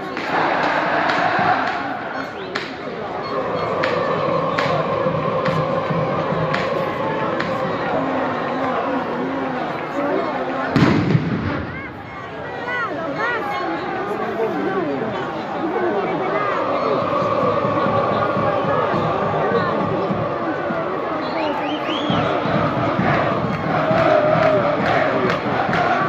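Firecrackers bang sharply in the stands.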